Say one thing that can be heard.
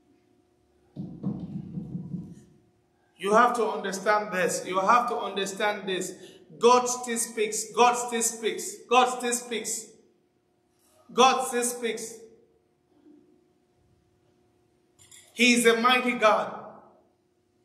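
A man speaks with animation into a microphone in a large, echoing hall.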